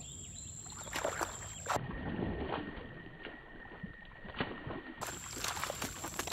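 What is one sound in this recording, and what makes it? Water splashes as a net is dipped and lifted.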